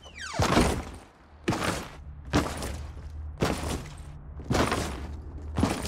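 A pickaxe swings and strikes with sharp, repeated thuds.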